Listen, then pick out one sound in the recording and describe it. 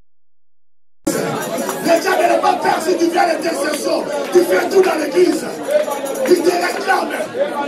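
A choir of women and men sings loudly through loudspeakers in an echoing hall.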